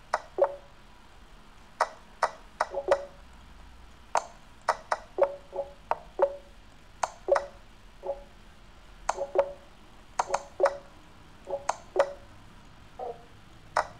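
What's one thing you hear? Chess pieces snap into place with short, sharp clicks, again and again.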